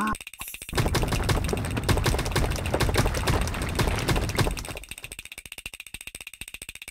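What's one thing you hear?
Rocks thud rapidly against a small toy figure.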